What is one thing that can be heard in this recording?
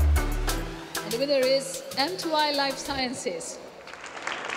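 A woman announces loudly through a microphone.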